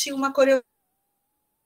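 An elderly woman speaks over an online call.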